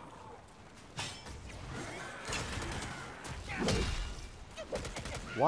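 A staff strikes with heavy thuds.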